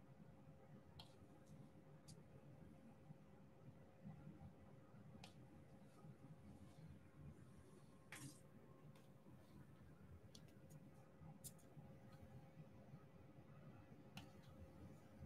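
Small plastic beads click softly as a tool presses them into place.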